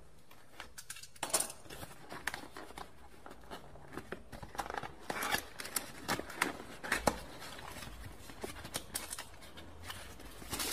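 Cardboard packaging rustles and scrapes as hands open a box.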